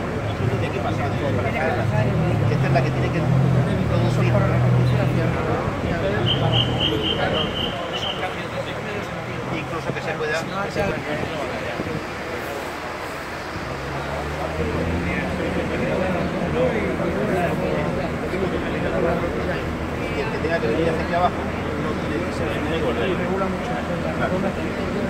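An excavator engine rumbles nearby.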